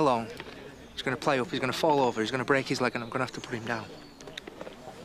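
A younger man answers calmly, close by.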